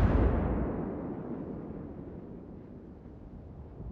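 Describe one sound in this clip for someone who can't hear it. A heavy naval gun fires with a deep boom that slowly rumbles away.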